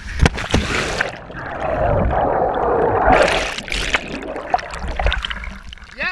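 Air bubbles churn and roar underwater.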